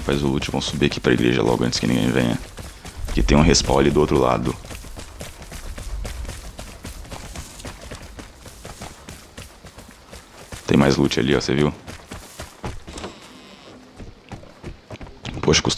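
Footsteps crunch over rough ground at a steady walking pace.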